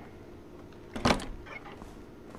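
A heavy metal door swings open with a clunk.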